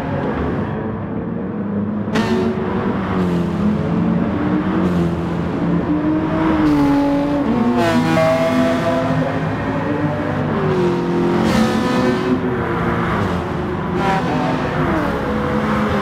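Racing car engines roar loudly, rising and falling in pitch as they shift gears.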